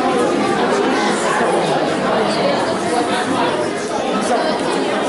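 A crowd of adults and children murmurs in an echoing hall.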